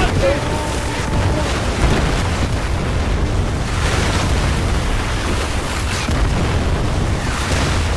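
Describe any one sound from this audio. A motorboat engine roars.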